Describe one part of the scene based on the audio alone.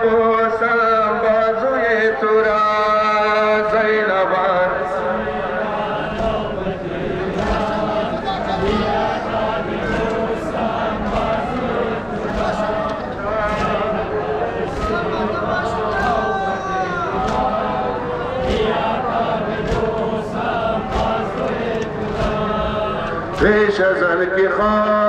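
A large crowd of men chants along.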